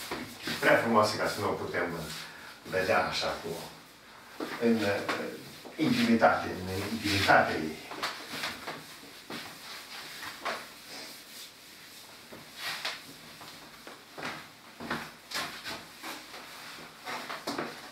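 A sponge wipes and rubs across a board.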